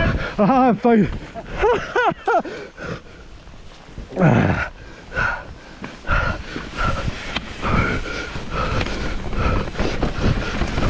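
Wind rushes past outdoors.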